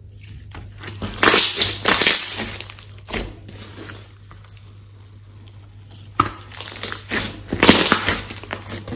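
Sticky slime squelches and crackles as hands squeeze and press it.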